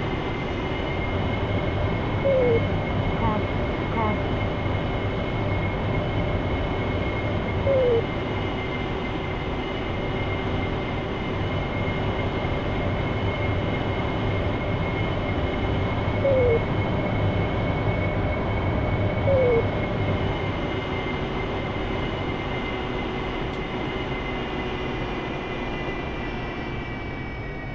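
A jet engine roars and whines steadily throughout.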